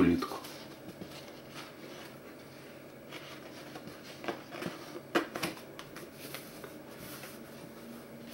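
Paper pages rustle and flap as a book's pages are turned.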